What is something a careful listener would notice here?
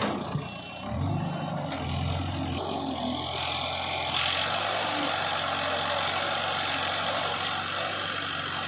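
A backhoe's diesel engine runs and revs.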